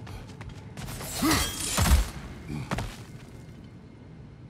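A metal chain whips through the air with a loud whoosh.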